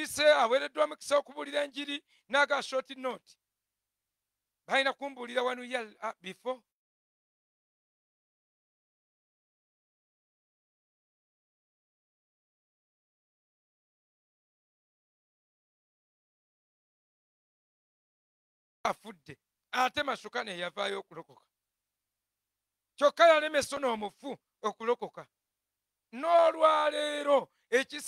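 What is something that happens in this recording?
A man preaches with animation into a microphone, pausing for long stretches.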